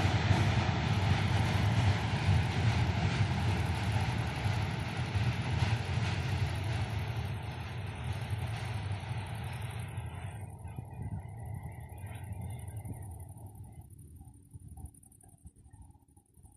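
A passenger train rumbles across a steel truss bridge and fades into the distance.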